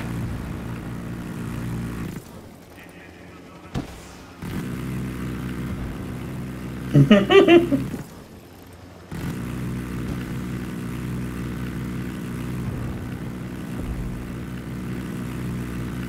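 A helicopter's rotor thumps and drones steadily.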